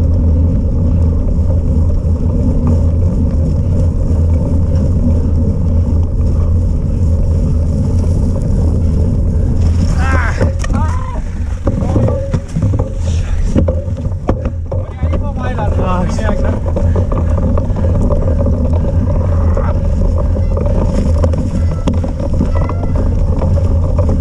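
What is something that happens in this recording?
Bicycle tyres roll and crunch over a snowy dirt trail.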